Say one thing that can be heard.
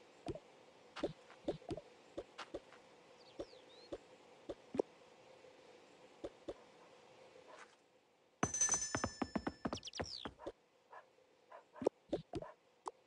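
Fingertips tap on a glass touchscreen.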